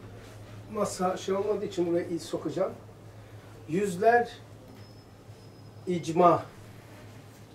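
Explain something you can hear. An elderly man speaks calmly nearby, in short phrases.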